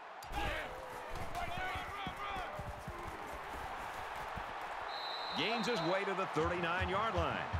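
Football players' pads clash and thud as they collide.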